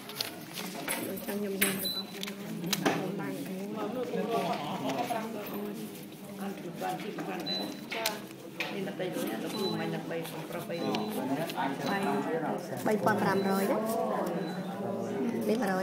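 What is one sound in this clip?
Paper banknotes rustle and flutter as hands count them.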